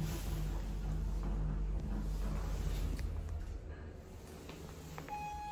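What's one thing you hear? An elevator hums with a low rumble as it moves.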